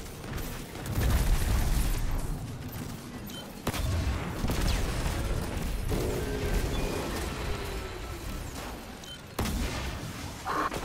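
Heavy blasts boom and rumble.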